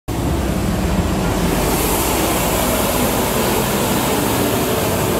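A street sweeper truck's engine rumbles loudly close by.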